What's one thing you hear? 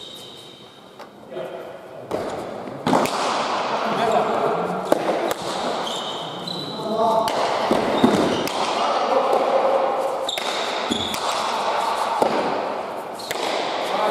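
A ball smacks hard against a wall in a large echoing hall.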